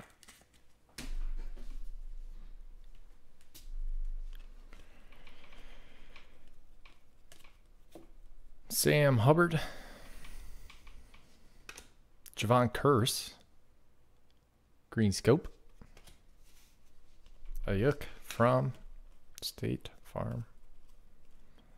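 Trading cards slide and rustle against each other in someone's hands.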